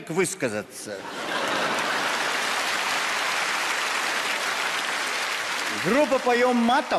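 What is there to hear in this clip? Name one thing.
A large audience laughs.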